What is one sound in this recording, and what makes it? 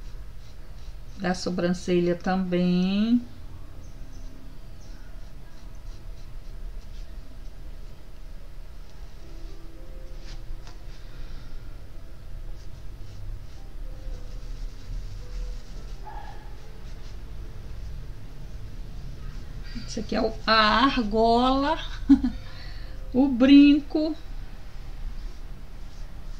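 A paintbrush softly strokes across canvas.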